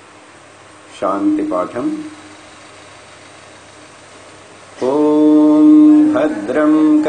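An elderly man chants in long, steady held notes close to a microphone.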